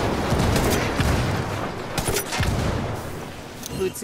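A vehicle explodes with a loud boom.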